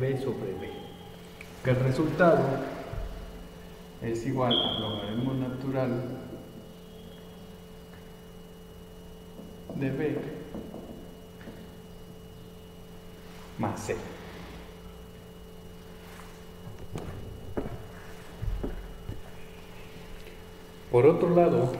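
A man speaks calmly, close by, in short bursts with pauses.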